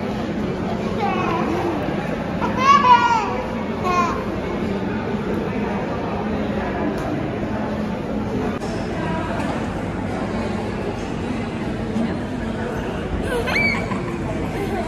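A young child squeals and shrieks playfully.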